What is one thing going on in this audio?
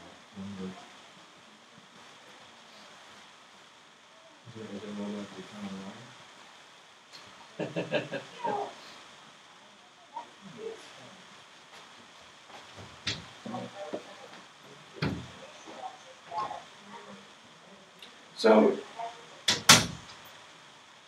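An elderly man speaks to a small group, heard from across the room.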